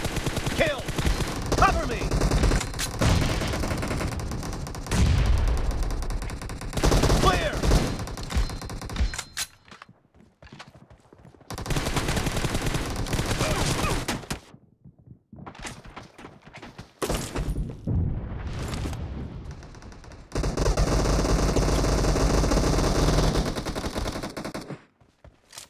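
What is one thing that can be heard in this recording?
Rifle shots crack in rapid bursts.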